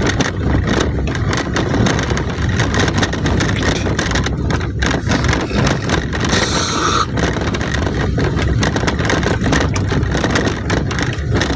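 Tyres crunch and rumble over a rough gravel road.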